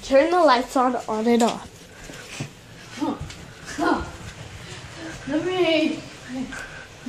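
A young girl sings loudly in a high voice close by.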